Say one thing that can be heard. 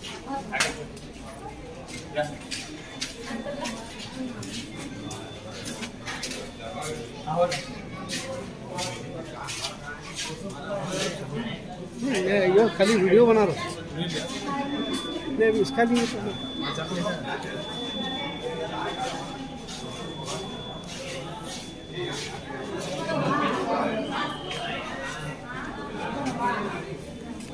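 Several men and women talk nearby at once, their voices mixing.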